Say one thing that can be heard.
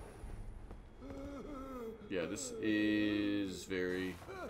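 A man speaks close into a microphone.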